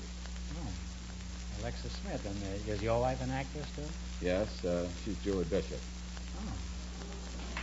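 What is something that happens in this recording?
A man speaks with animation, heard through an old, muffled radio recording.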